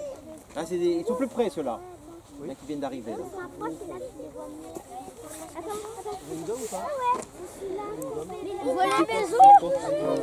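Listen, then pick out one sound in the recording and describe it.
Children chatter and call out excitedly nearby.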